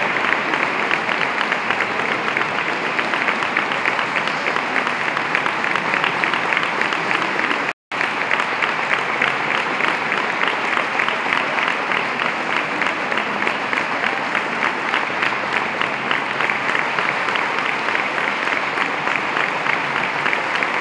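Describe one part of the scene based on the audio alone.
A mixed choir sings unaccompanied in a reverberant church.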